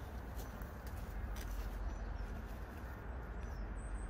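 Dry leaves rustle and crunch underfoot.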